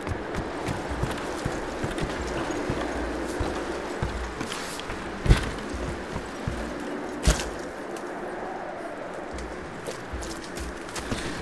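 Footsteps thud on wooden planks and ground.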